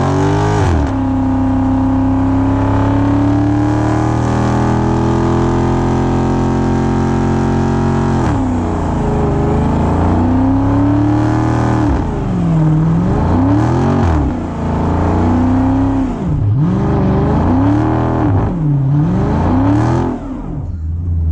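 A car engine roars loudly and revs up and down again and again.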